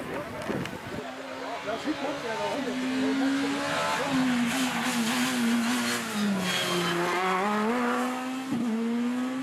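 A rally car engine revs high and shifts gears as the car speeds close by.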